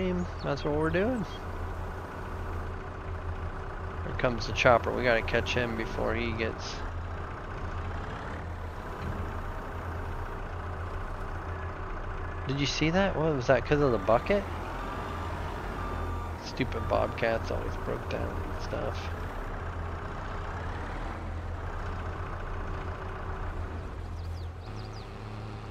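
A small loader's diesel engine idles and hums steadily.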